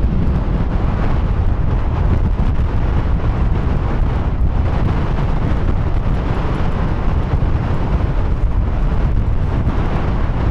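Strong wind gusts outdoors and buffets the microphone.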